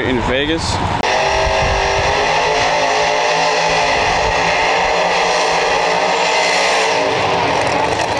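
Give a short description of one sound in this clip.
A race car engine rumbles loudly and steadily.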